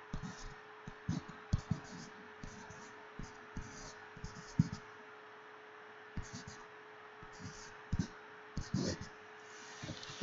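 A stylus taps and scratches on a tablet.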